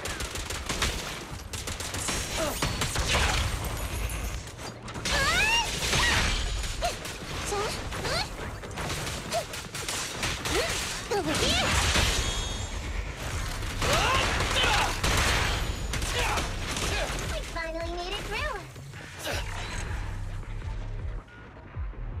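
Sword slashes and impacts crash rapidly.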